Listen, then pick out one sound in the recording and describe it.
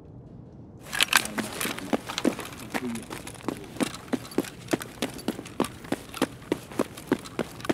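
Footsteps crunch steadily over gravel and debris.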